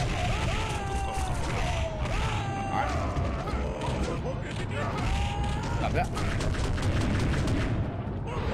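Punches and kicks land with sharp smacks in a fighting video game.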